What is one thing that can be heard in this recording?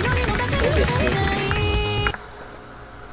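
Fast electronic game music plays and then cuts off abruptly.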